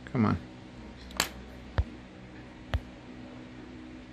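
A small plastic test clip clicks onto a circuit board.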